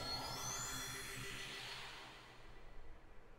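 A shimmering magical beam whooshes and rises in pitch.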